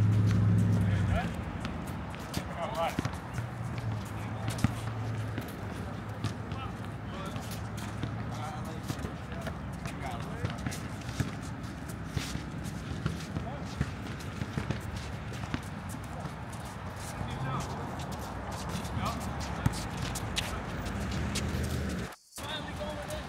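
Sneakers squeak on the court surface.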